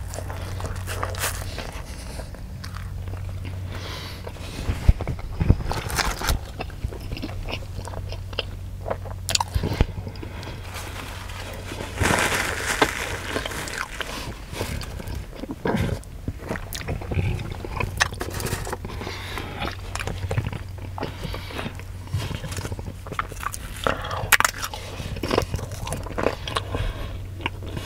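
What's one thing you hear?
A man chews and crunches food with his mouth close by.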